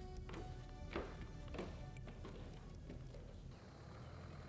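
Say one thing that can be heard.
Footsteps climb wooden stairs indoors.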